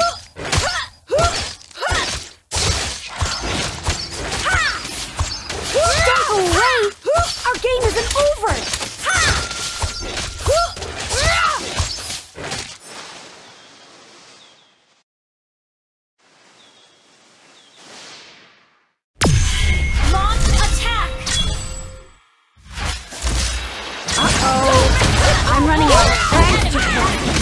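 Magic blasts and weapon strikes clash in a fast video game battle.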